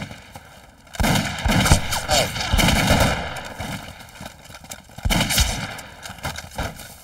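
Rifles fire in bursts outdoors.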